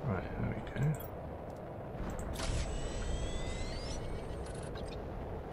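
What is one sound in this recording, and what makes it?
A game menu beeps and chimes as it opens and closes.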